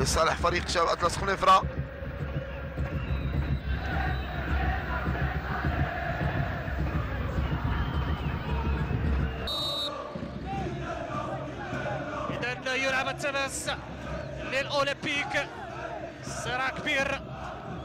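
A stadium crowd roars and murmurs in the distance.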